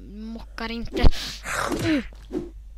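A blade strikes flesh with a wet thud.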